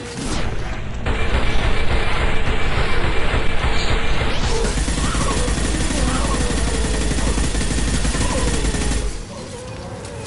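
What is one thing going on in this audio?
Gunfire and blasts roar loudly and steadily.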